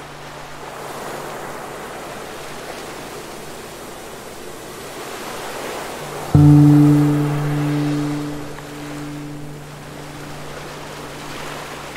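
Waves break and wash onto a pebble shore.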